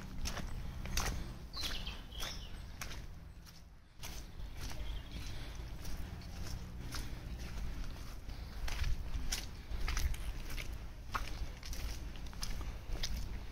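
Footsteps squelch steadily through wet mud.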